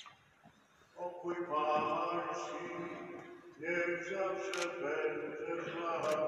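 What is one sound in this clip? Men chant slowly in a large echoing hall.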